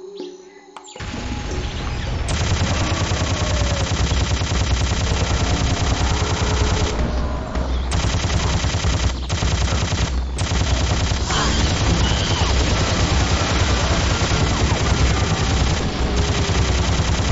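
A heavy machine gun fires in a long, rapid, roaring stream.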